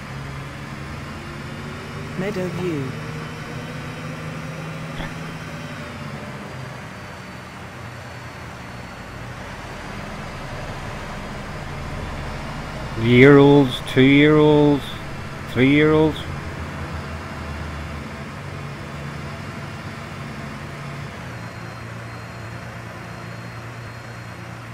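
A diesel city bus engine drones while driving along a street.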